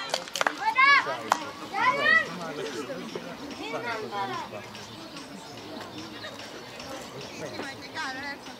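Children shout and call out in high voices outdoors.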